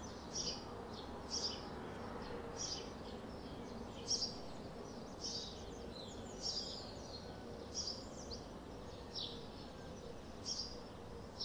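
Swifts scream shrilly in short bursts overhead.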